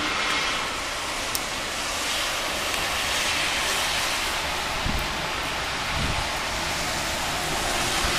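Snow falls with a soft, steady hiss outdoors.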